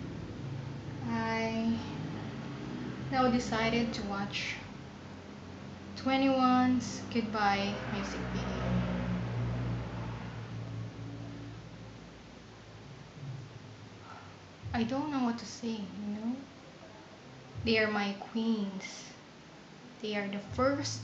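A young woman talks casually, close by, in short bursts with pauses.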